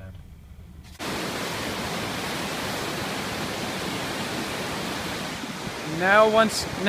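A flooded river rushes and roars loudly.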